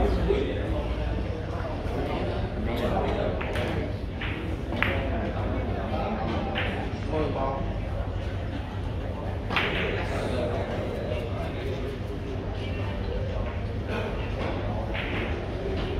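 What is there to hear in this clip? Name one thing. Men and women chatter quietly in the background of a large room.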